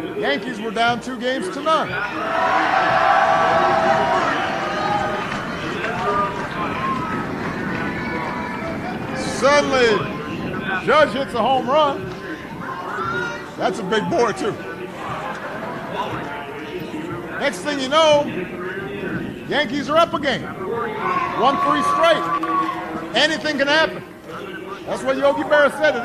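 A man speaks with animation into a microphone in a large echoing room.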